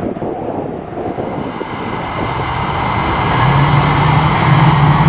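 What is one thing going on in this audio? A jet airliner's engines roar and whine steadily, growing louder.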